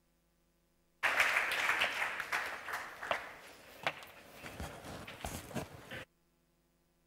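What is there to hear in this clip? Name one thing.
An audience applauds in a large hall, then the clapping fades away.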